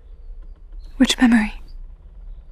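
A young woman speaks a short, sharp phrase up close.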